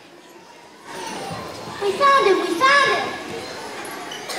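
A young boy speaks loudly into a microphone over a loudspeaker.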